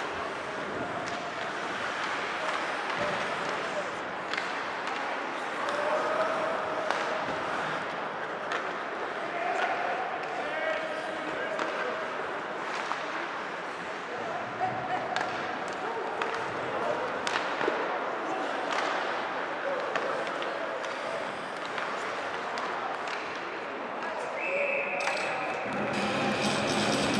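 Hockey sticks click against the puck.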